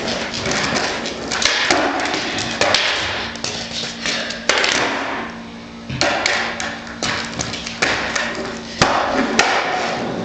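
A skateboard clacks sharply against concrete.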